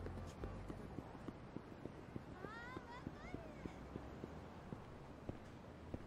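Footsteps slap quickly on pavement.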